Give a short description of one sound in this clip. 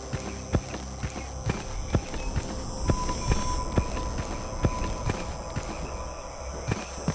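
Footsteps crunch steadily on a rough stone path.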